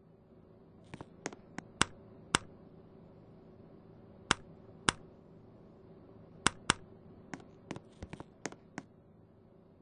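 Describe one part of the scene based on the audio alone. A light switch clicks several times.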